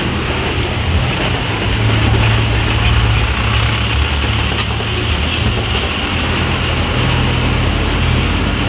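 A truck's diesel engine rumbles steadily close by.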